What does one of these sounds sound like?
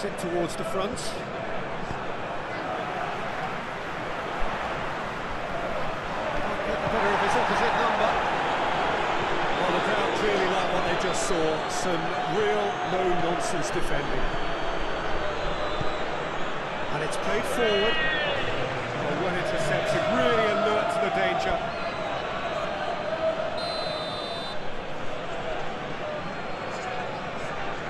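A stadium crowd roars and cheers steadily throughout, swelling loudly at times.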